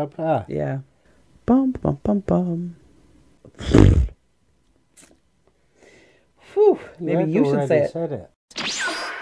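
A middle-aged woman talks casually into a close microphone.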